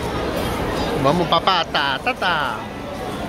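A toddler babbles nearby.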